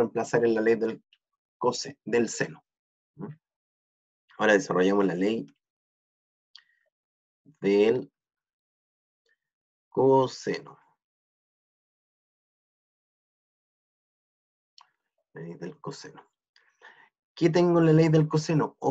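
A young man explains calmly through a microphone, in short phrases with pauses.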